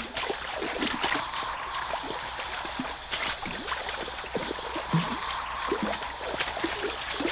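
Horses and people splash through shallow water.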